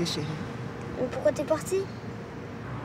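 A young girl asks something in a small, upset voice, close by.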